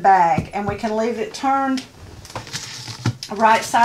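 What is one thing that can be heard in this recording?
A roll of tape is set down on a table with a soft thud.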